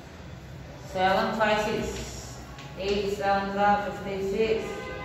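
A young woman speaks clearly, close by.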